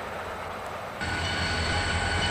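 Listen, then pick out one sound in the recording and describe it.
A diesel locomotive hums steadily in the distance.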